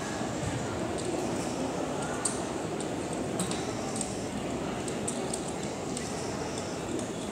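Feet tap and shuffle on a padded floor.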